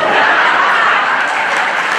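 An elderly man laughs loudly.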